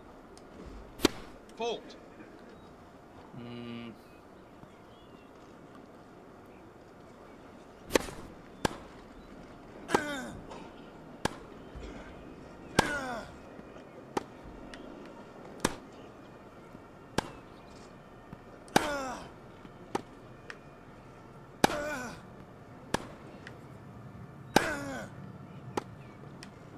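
A tennis ball is struck sharply with a racket, back and forth in a steady rally.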